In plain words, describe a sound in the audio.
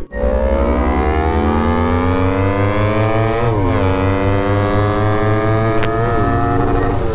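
A motorcycle engine roars loudly, climbing in pitch and dropping as it shifts gears.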